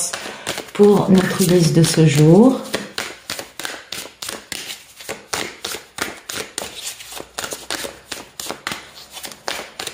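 Playing cards are shuffled with quick, dry riffling clicks.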